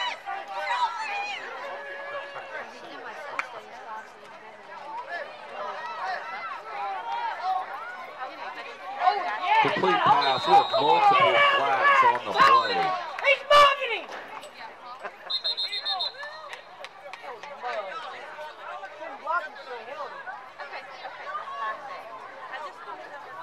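A crowd of spectators and cheerleaders chatters and calls out outdoors.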